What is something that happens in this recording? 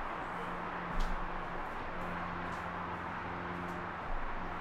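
Footsteps scuff on concrete outdoors.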